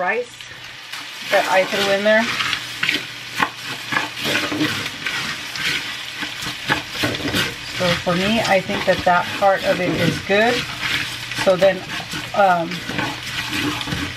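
A spatula scrapes and stirs rice in a metal pot.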